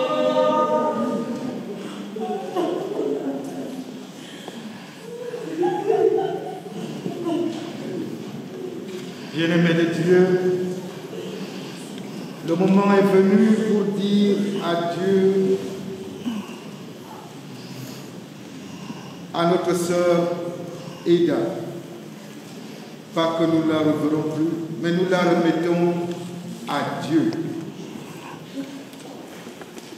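A man reads aloud through a microphone in an echoing hall.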